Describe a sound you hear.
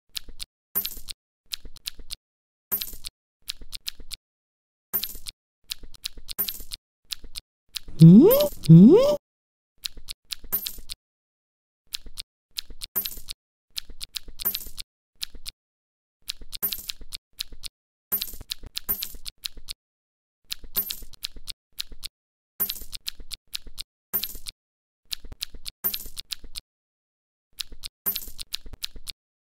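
A cartoon character munches food with short, quick chomping sounds, again and again.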